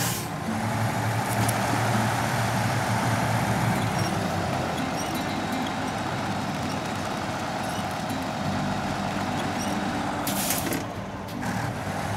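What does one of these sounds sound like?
A winch whirs as it pulls a truck.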